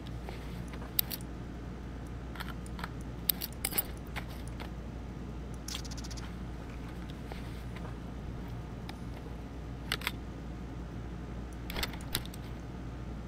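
Game inventory items click and rustle as they are moved.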